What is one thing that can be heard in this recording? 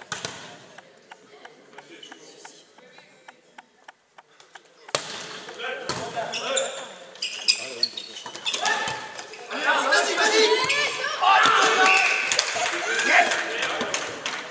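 A volleyball is struck and thuds in a large echoing hall.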